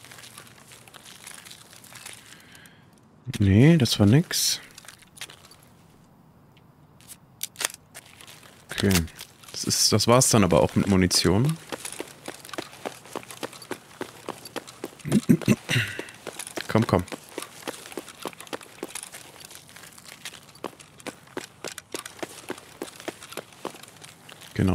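Footsteps tread steadily on pavement.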